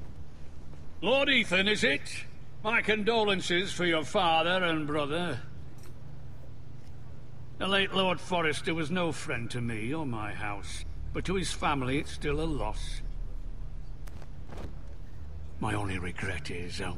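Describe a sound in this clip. A middle-aged man speaks gravely and calmly, close by.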